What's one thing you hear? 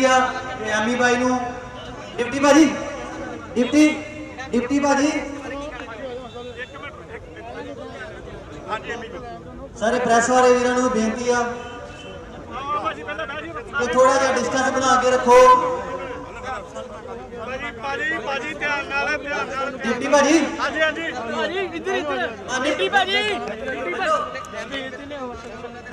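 Several men shout and talk over one another in a crowd outdoors.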